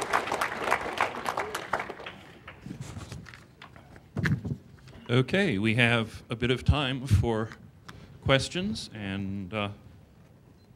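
An elderly man speaks calmly into a microphone, heard through a loudspeaker in a large room.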